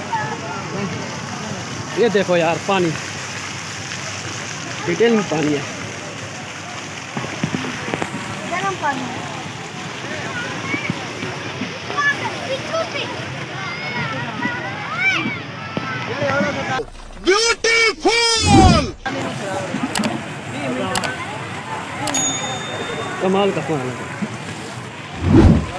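Fountains splash and gurgle steadily.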